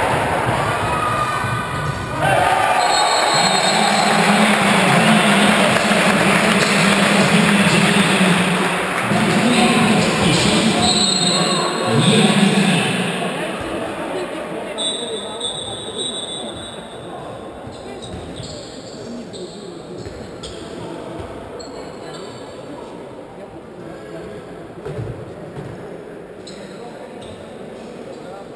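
A ball thumps as players kick it.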